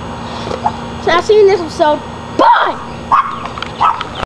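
A teenage boy speaks loudly and with animation close by, outdoors.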